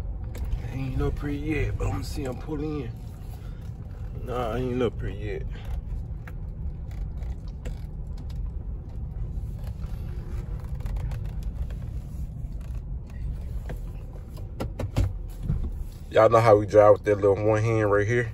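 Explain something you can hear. A car engine hums steadily from inside the cabin as the car drives.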